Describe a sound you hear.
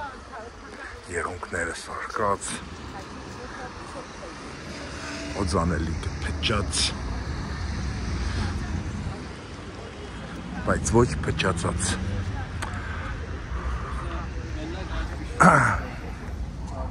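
Passers-by talk briefly as they walk past.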